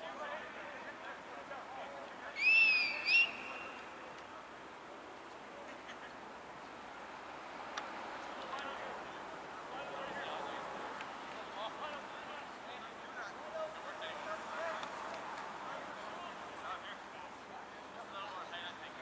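Young men call out to one another across an open field.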